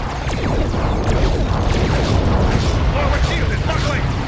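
Blasts crash and explode against a shield.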